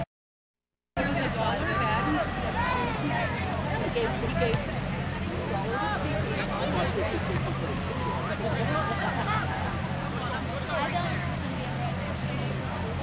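Spectators shout and cheer from the sidelines.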